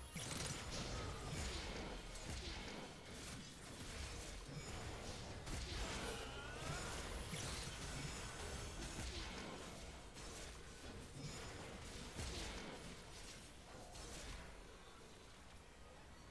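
Game spell effects burst and crackle in quick succession.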